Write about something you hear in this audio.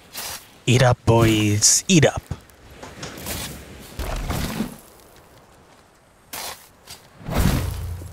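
A shovel digs into loose dirt with soft thuds.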